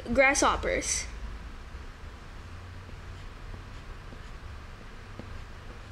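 A pencil scratches softly on paper.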